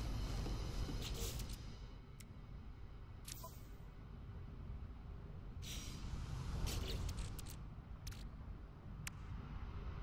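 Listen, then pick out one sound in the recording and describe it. Soft whooshes and clicks sound as a menu opens and switches pages.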